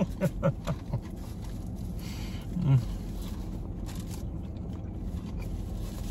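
Paper wrapping rustles.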